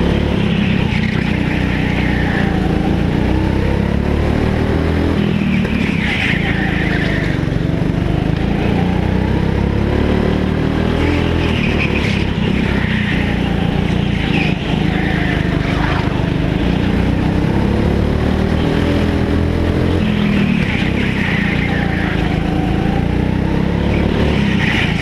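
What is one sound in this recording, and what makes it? Kart tyres squeal on the smooth floor in the turns.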